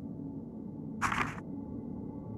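A page turns with a soft rustle.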